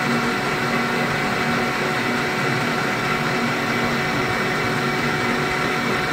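A cutting tool scrapes and hisses against turning metal.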